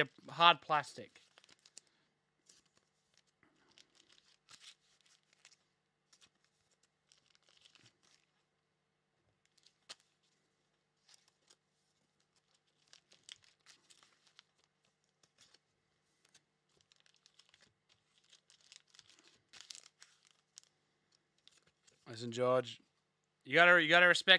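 Trading cards and packets rustle and crinkle in hands.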